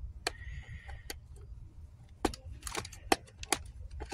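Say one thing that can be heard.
A cardboard box knocks and scuffs as a hand handles it.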